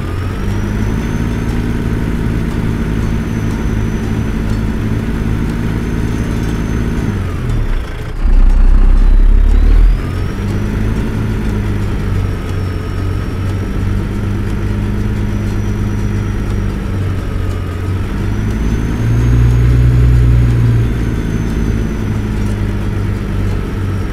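A truck's diesel engine rumbles steadily, dropping briefly as the gears shift and then revving up again.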